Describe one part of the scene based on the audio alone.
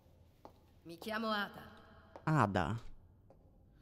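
A young woman speaks calmly and softly.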